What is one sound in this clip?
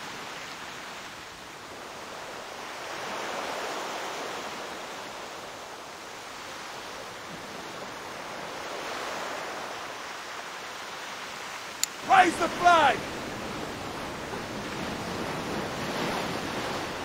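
Sea waves wash and swell steadily around a sailing ship.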